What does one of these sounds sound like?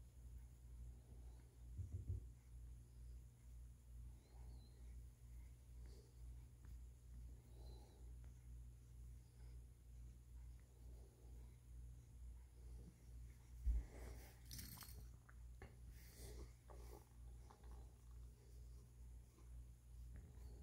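A hand rubs softly through a cat's fur.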